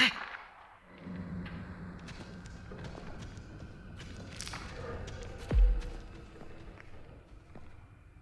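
Footsteps run.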